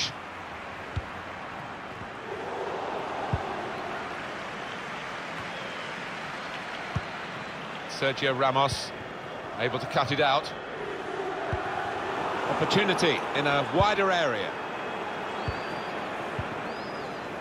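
A football is kicked with short dull thumps.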